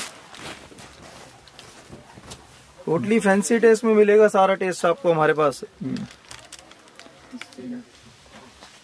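Silk fabric rustles as it is handled.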